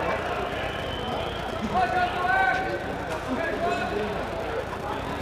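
A crowd of men chatters loudly all around.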